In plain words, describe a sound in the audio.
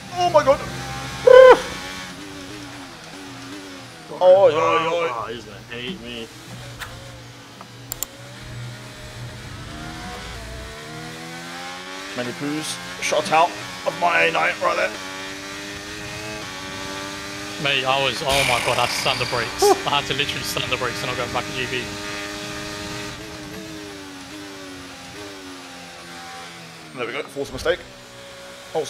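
A racing car engine whines steadily, shifting up and down through the gears.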